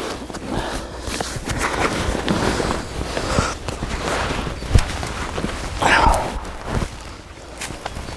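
A canvas backpack rustles as it is handled.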